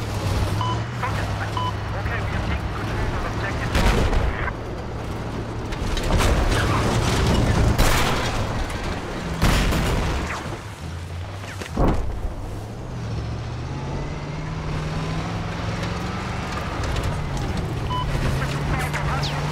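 Tyres rumble over rough, bumpy ground.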